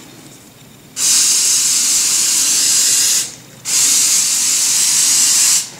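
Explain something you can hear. An aerosol can sprays in long hissing bursts.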